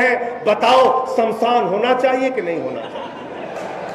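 A man speaks forcefully into a microphone, his voice heard over loudspeakers.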